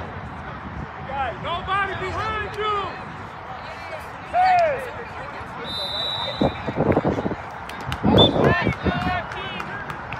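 Young players shout to each other across the field.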